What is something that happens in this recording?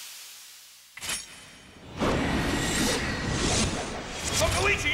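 A spear swishes through the air.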